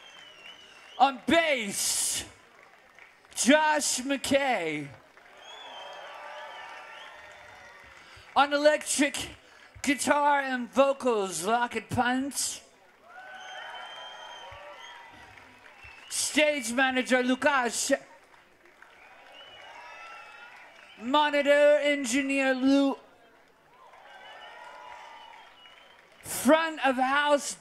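A young man sings loudly through a microphone in short phrases.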